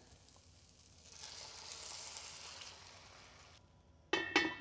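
Water pours into a hot pan and sizzles.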